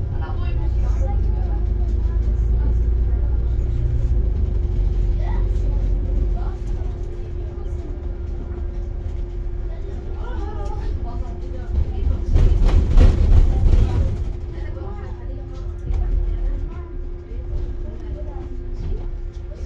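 A vehicle's tyres roll steadily along a road with a low rumble.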